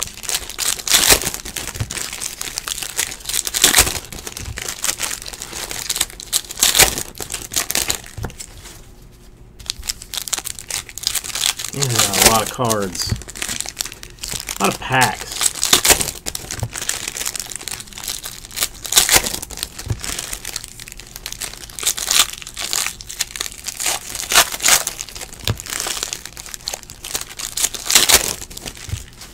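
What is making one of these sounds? Foil wrappers crinkle and rustle as hands tear them open.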